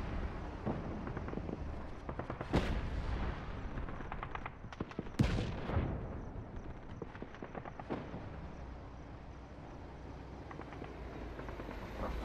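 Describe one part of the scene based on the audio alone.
A heavy armoured vehicle's engine rumbles as it drives along a road.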